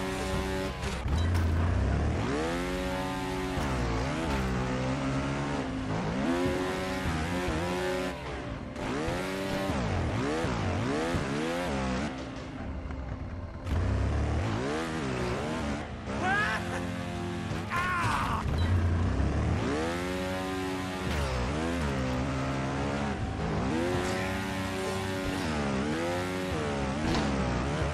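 A motorbike engine revs up and down.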